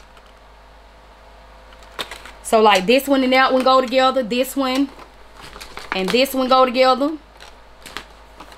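Plastic packaging rustles in a woman's hands.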